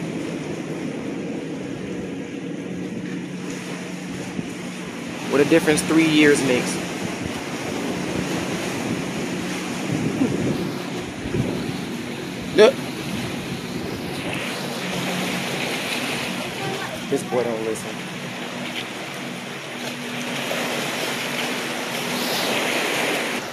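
Small waves wash and splash over rocks along the shore.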